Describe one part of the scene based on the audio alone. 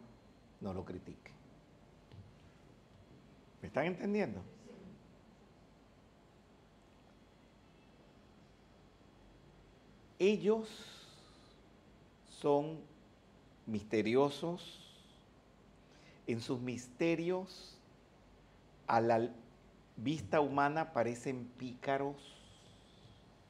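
An elderly man speaks with animation into a microphone, pausing between phrases.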